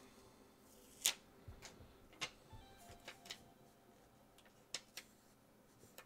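Paper crinkles and rustles softly as a sticker's backing is peeled off.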